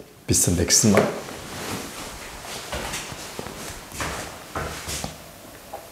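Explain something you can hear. Clothing rustles against a microphone as a man gets up and moves away.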